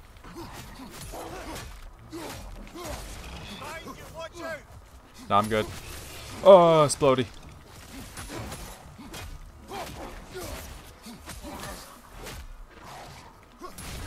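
Blows thud and weapons clash in a fight.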